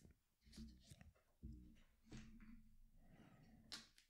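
A card is set down softly on a cloth mat.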